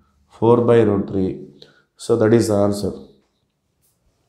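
A man speaks clearly and calmly, close to a microphone.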